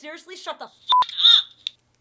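A phone beeps once.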